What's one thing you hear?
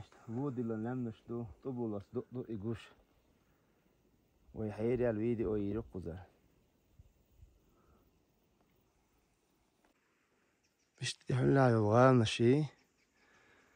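A man speaks calmly close by, in short bursts outdoors.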